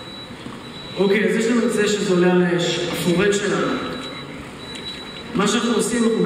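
A young man speaks calmly through a headset microphone and loudspeakers in a large echoing hall.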